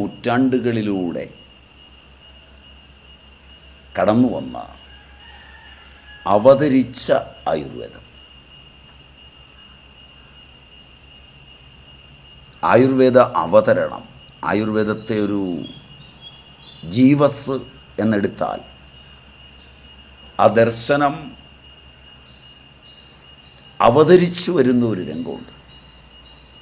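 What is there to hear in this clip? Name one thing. An elderly man speaks calmly and close to the microphone, in short phrases with pauses.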